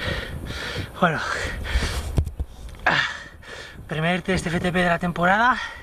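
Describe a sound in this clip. A man talks breathlessly close to the microphone.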